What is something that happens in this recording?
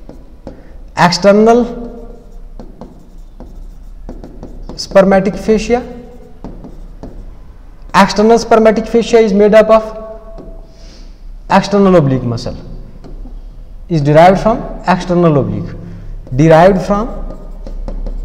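A man speaks calmly in short phrases, as if explaining.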